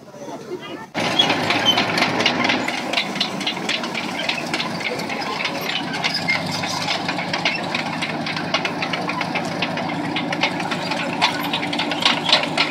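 A tank engine roars loudly nearby.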